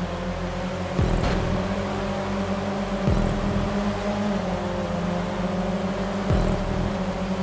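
A car engine drops in pitch briefly as gears shift.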